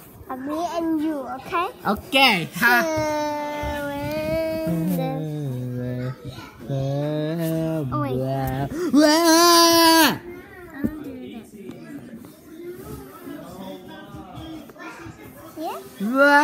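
A young child sings and squeals loudly, very close.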